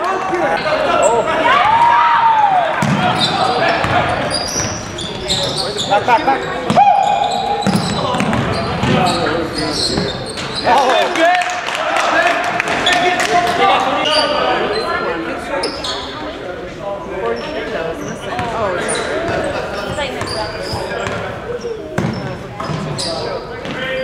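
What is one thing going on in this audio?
A crowd of spectators talks and cheers, echoing in a large gym.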